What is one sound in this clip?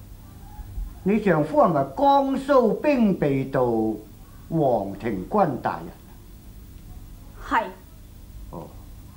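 An elderly man speaks calmly and at length.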